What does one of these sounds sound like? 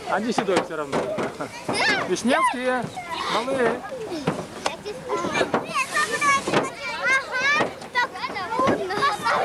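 Young children talk and shout excitedly close by.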